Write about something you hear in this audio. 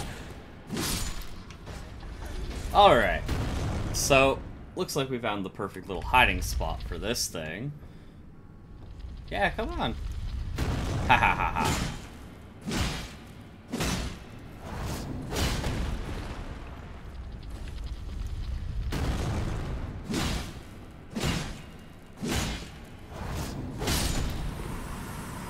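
Swords whoosh and strike with sharp metallic hits.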